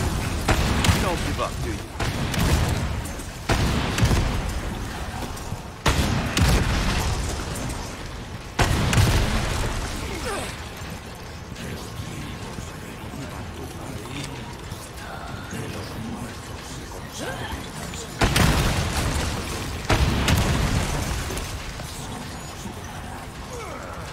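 Heavy explosions boom and rumble, one after another.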